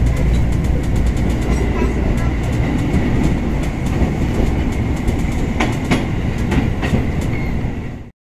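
A passing train rushes by close alongside.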